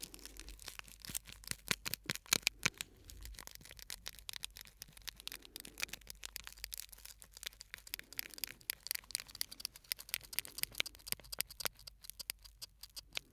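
A stiff plastic card taps and scratches close to a microphone in quick crisp clicks.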